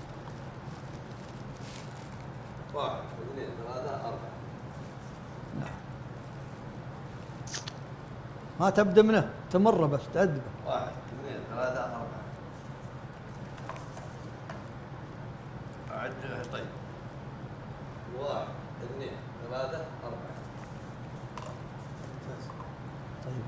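Paper cups rustle softly as a man arranges them.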